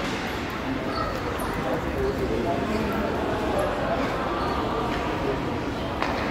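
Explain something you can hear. A crowd of hockey players makes a steady din that echoes around a large indoor rink.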